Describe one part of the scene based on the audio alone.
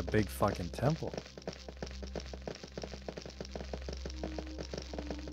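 Footsteps tap steadily on a hard stone floor.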